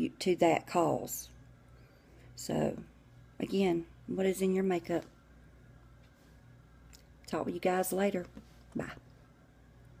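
A middle-aged woman speaks close to the microphone in short, calm phrases.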